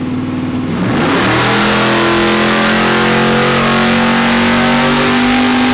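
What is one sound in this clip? A race car engine roars at full throttle.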